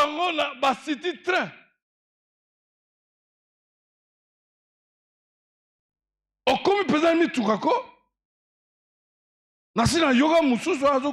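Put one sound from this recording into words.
A man speaks with animation into a microphone, in bursts with long pauses.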